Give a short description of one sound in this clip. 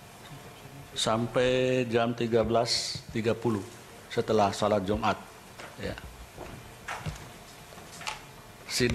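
A middle-aged man speaks calmly and slowly into a microphone.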